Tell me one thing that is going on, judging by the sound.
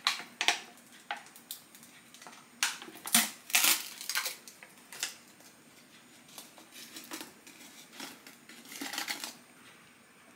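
A foil seal tears and crinkles as a can of crisps is opened.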